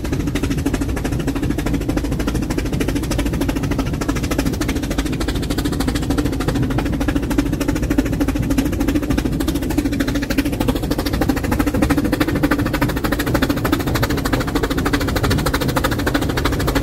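A steam train rumbles and rattles steadily along the rails.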